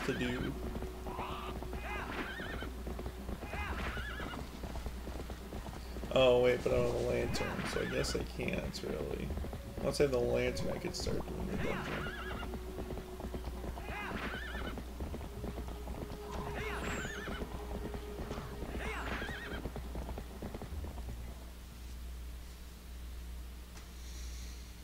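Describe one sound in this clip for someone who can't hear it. Paws patter quickly over grass as a wolf runs.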